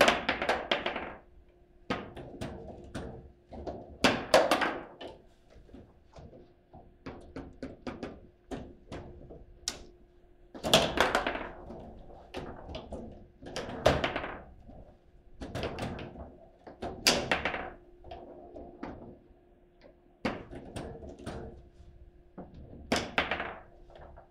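Foosball rods rattle and spin as players jerk them.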